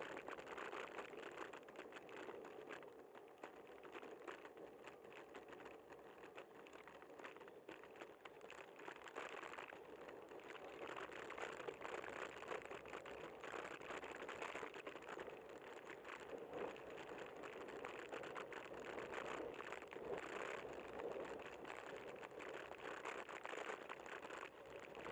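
Wind buffets a microphone outdoors, rushing and crackling.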